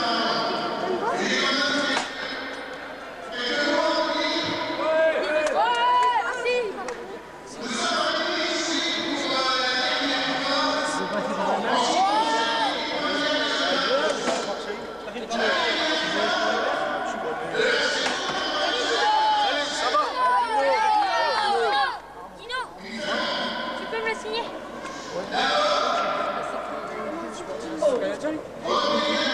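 An elderly man sings into a microphone, heard through loudspeakers in a large echoing hall.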